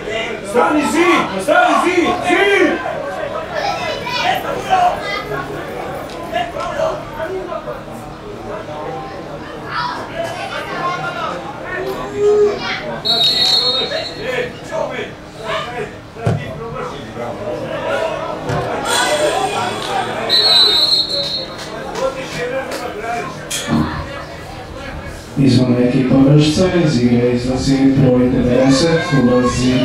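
Men shout to each other outdoors in the distance.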